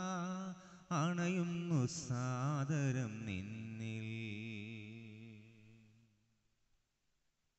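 A man sings a slow chant into a microphone in a reverberant room, the last note fading out.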